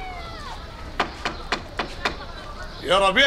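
A wooden stick knocks on a wooden door.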